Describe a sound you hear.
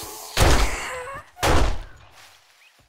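A pistol fires shots.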